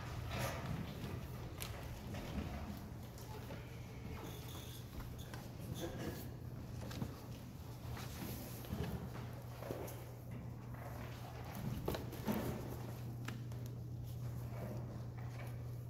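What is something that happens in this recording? Footsteps shuffle on a hard floor in a large echoing hall.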